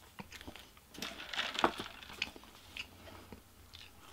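A young man slurps a drink through a straw.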